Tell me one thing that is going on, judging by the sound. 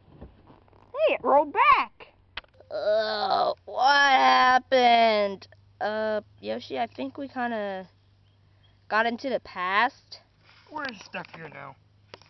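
A young woman speaks up close in high, playful character voices.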